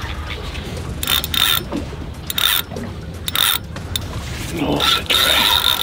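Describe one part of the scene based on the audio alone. A fishing reel whirs and ratchets in short bursts as its handle is cranked.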